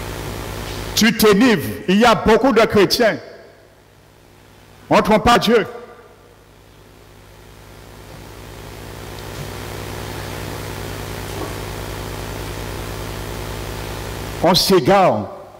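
An elderly man speaks with animation through a headset microphone in an echoing hall.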